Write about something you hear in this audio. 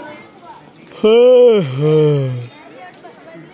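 A bear lets out a loud, drawn-out groaning call close by.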